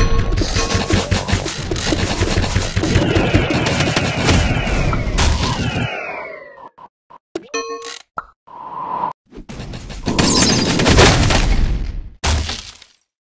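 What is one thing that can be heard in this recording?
Explosions boom and crackle in quick bursts.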